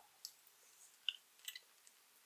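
A woman bites into soft jelly candy with a wet crunch.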